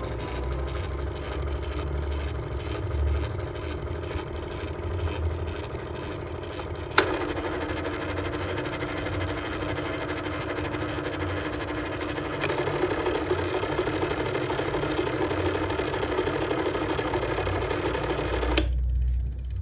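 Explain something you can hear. An electric fan whirs steadily, then stops.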